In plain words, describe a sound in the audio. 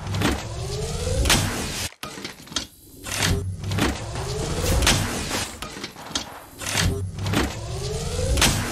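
A shield recharge whines, rising in pitch, again and again.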